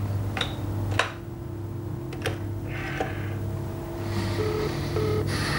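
A man speaks calmly into a telephone.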